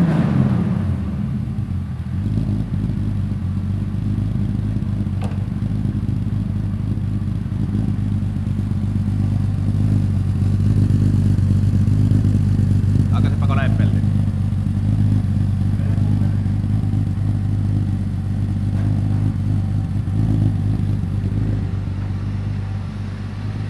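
A car engine idles with a deep, steady rumble close by, in an echoing room.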